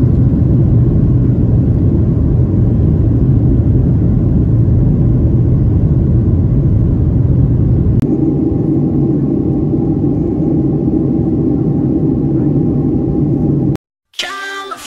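A jet engine roars steadily from inside an aircraft cabin.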